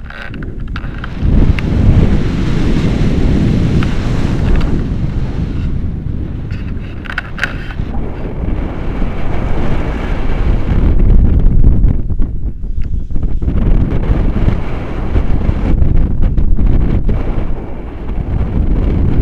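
Strong wind rushes and buffets loudly past.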